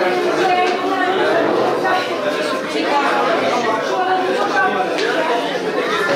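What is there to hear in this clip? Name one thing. A young man speaks and laughs nearby.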